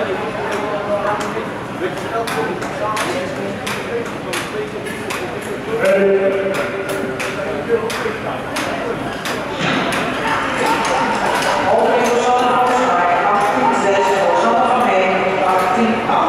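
Ice skates scrape across the ice.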